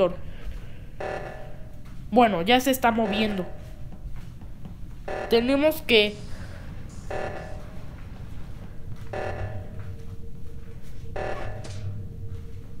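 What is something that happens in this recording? An alarm blares in repeated bursts.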